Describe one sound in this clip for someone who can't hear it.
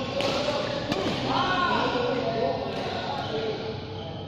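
Sports shoes squeak sharply on a hard court floor in a large echoing hall.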